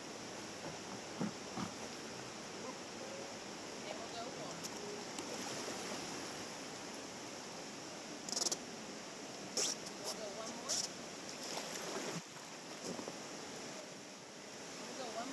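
A river flows and ripples around a raft.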